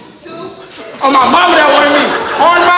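Several young men laugh and shout loudly.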